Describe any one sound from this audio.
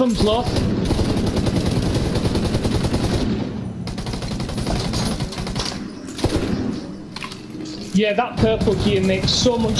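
Rifle gunfire rattles in short bursts.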